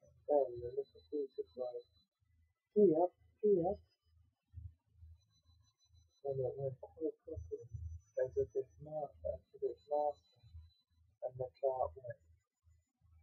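A young man reads aloud calmly, close by.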